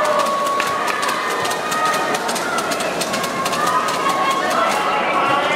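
Spectators clap rapidly.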